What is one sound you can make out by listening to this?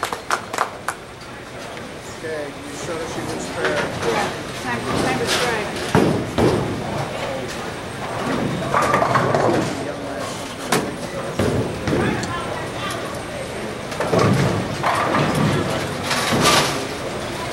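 Bowling pins clatter in a large echoing hall.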